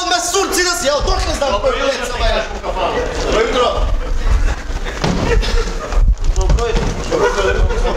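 Men talk loudly on a stage, heard from the audience.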